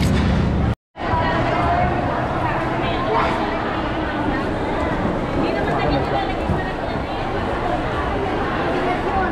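Many voices chatter in a busy crowd.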